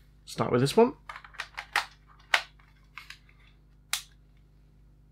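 Plastic clicks and knocks as a handheld game console is handled.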